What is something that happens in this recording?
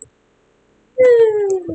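A bright chime glides upward.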